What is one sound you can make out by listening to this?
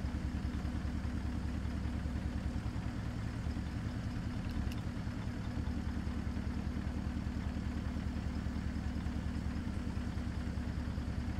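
A truck's diesel engine idles with a steady, low rumbling throb.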